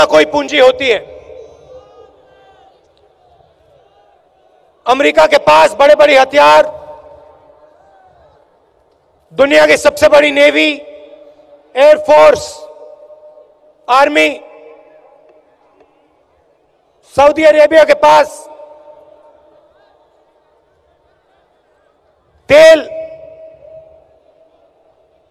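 A man speaks forcefully into a microphone, his voice booming through loudspeakers with a long echo outdoors, in bursts between pauses.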